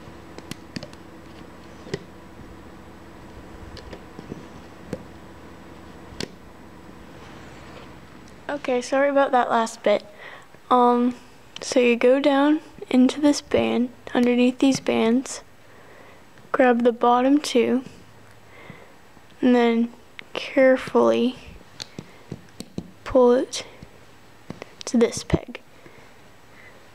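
Small plastic clicks and taps sound as rubber bands are worked over pegs.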